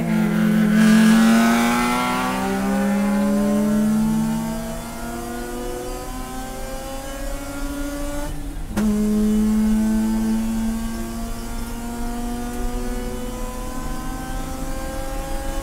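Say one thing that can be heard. A race car engine roars loudly from inside the cabin, rising in pitch as it accelerates and dropping at each gear shift.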